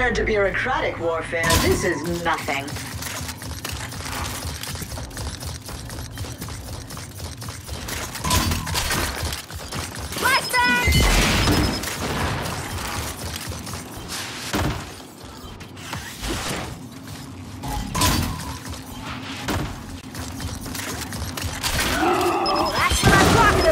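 Heavy armoured footsteps thud on stone as a figure runs.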